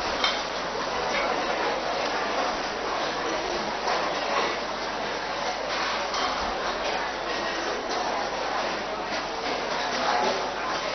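A crowd of men and women murmur and chatter in the background.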